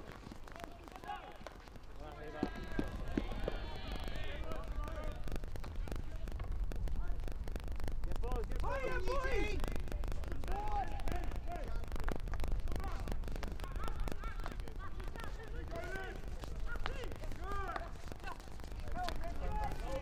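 Hockey sticks clack against a ball on a pitch outdoors.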